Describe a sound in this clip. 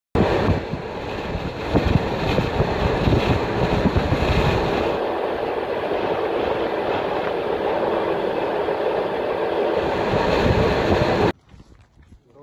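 A vehicle rumbles steadily as it drives along a road.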